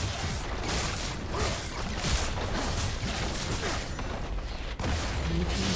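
Fantasy battle sound effects clash, whoosh and crackle in quick bursts.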